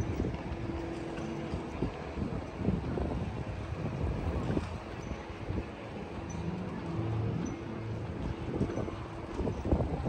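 A bicycle rolls past on the street.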